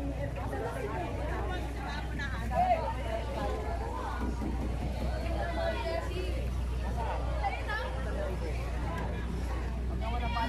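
Several men talk nearby in a busy crowd outdoors.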